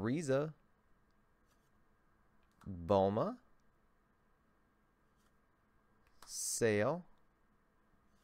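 Playing cards rustle and slide in a man's hands.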